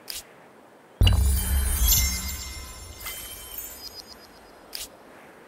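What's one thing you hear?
A short triumphant chime rings out with a deep boom.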